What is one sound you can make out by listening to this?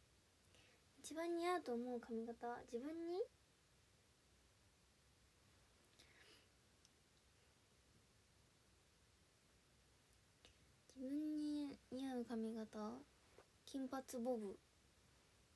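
A young woman speaks softly and playfully into a nearby microphone.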